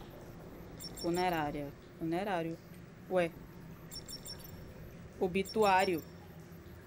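A young woman speaks in short bursts into a close microphone.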